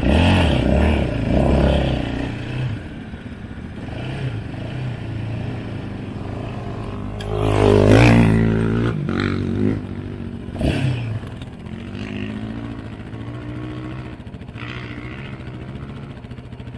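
Quad bike engines drone and rev close by.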